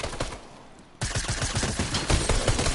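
Rapid gunshots crackle.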